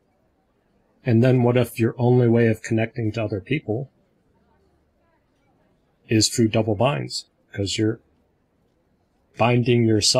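A man speaks with animation through a headset microphone over an online call, in short bursts with pauses.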